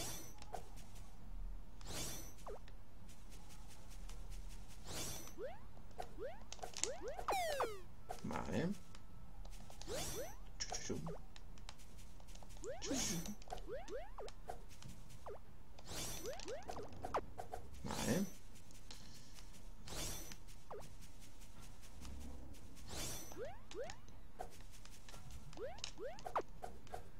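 Chiptune game music plays steadily.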